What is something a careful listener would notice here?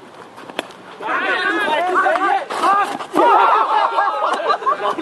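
Several men shout and cheer excitedly outdoors.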